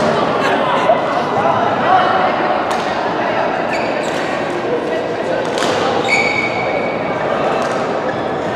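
A shuttlecock is struck sharply with a racket in a large echoing hall.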